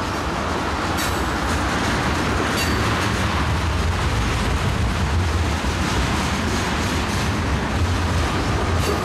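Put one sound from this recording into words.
Steel wheels clatter and squeal over rail joints.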